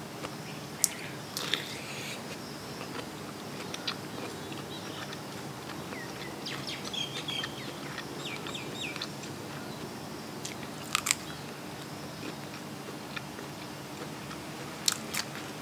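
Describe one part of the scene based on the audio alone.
A young woman chews and smacks her lips close to the microphone.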